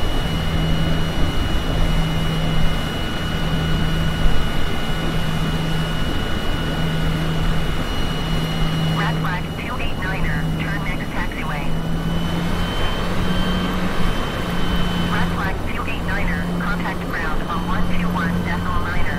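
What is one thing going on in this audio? Jet engines whine and rumble steadily as a plane taxis.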